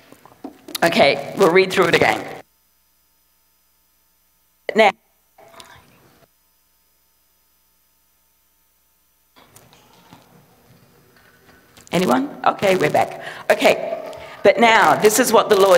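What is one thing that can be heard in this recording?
A middle-aged woman speaks with feeling through a microphone.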